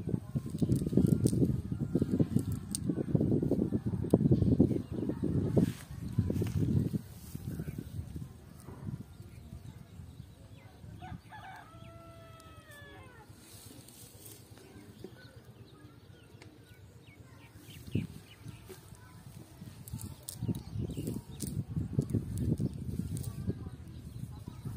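A fishing net rustles on dry grass as it is handled.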